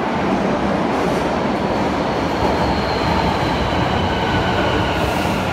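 Train brakes squeal high as a train slows.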